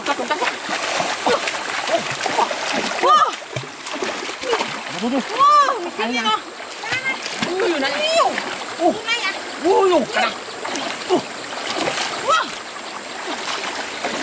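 Water splashes as feet wade through a shallow stream.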